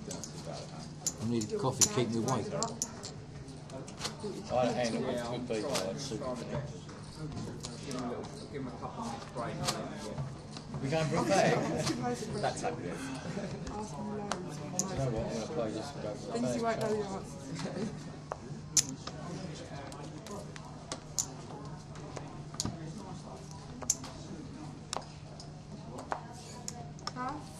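Poker chips click together in a player's hand.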